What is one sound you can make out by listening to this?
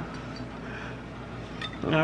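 A metal spoon stirs and clinks against a glass.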